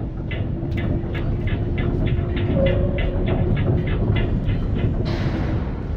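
A metal chain creaks and rattles as a hanging crate swings.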